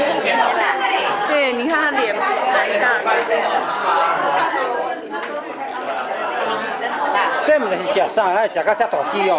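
A crowd of people murmurs in the background.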